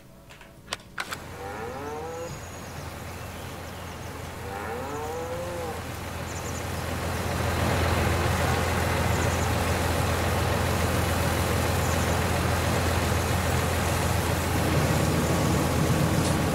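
A tractor engine rumbles steadily nearby and grows louder.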